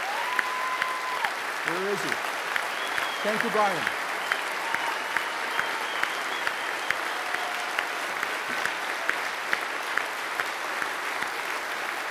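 A man claps his hands in a steady rhythm close by.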